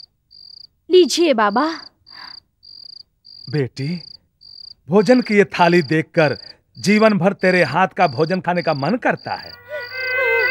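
A man speaks with emotion.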